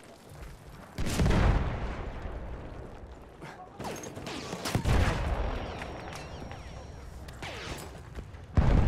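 Explosions boom nearby with a deep rumble.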